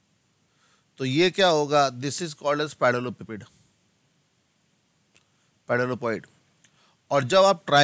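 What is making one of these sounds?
A man speaks calmly and clearly into a close microphone, in short bursts with pauses.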